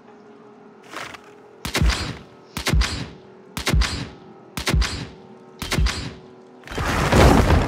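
A short countdown tone sounds once each second.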